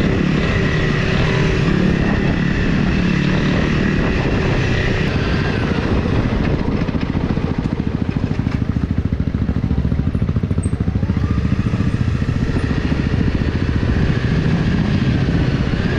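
A motorcycle engine runs close by, chugging and revving unevenly.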